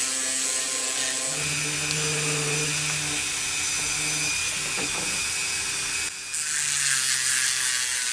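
A spinning bit grinds against metal.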